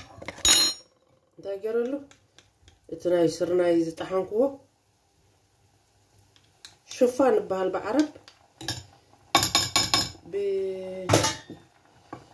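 A spatula scrapes and taps against a glass bowl.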